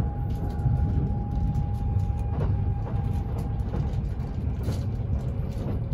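A train slows as it pulls into a station.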